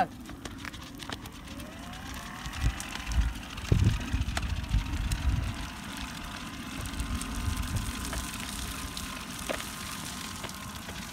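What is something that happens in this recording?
An electric wheelchair motor whirs as it moves.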